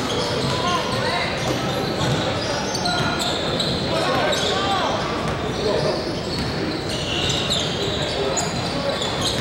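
Voices of players and onlookers echo around a large hall.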